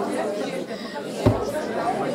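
A plastic bottle knocks against a table.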